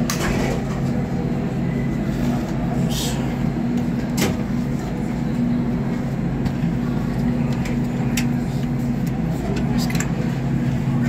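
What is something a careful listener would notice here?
Elevator buttons click as they are pressed.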